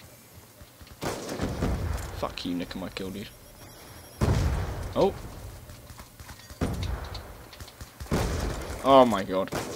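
Sniper rifle shots boom sharply, each followed by a rumbling echo.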